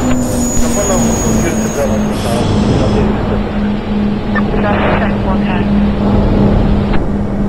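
A train's wheels rumble and clatter steadily along the track.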